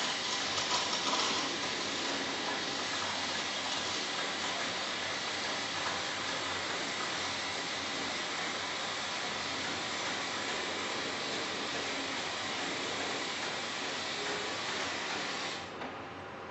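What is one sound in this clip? A coffee machine hisses steadily as it froths milk into a cup, then stops.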